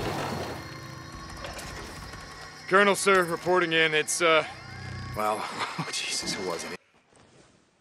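A motorcycle engine rumbles and idles.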